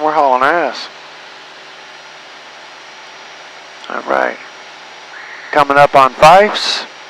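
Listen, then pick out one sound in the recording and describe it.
An aircraft engine drones steadily, muffled.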